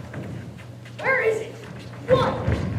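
A woman's voice cries out on stage in a hall.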